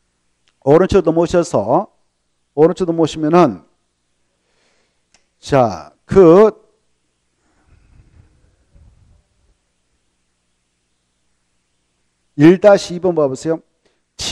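A middle-aged man speaks calmly into a clip-on microphone in short bursts.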